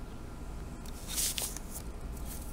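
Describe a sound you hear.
A sheet of paper slides and rustles across a table.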